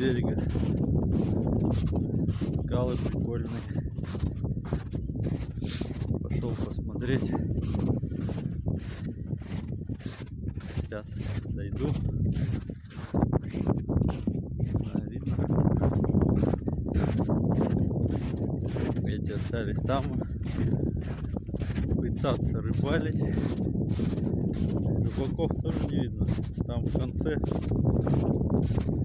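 A young man talks calmly and close.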